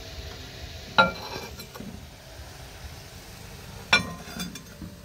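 A ceramic cup clinks onto a glass plate.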